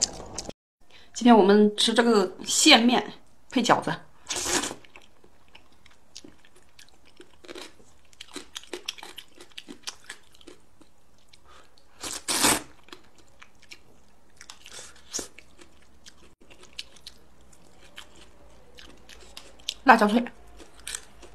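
A young woman slurps noodles loudly, close up.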